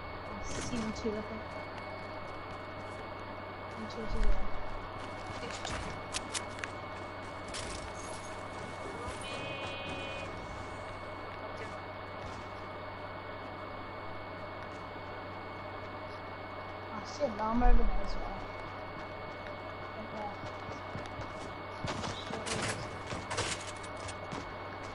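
Footsteps patter quickly on hard ground in a video game.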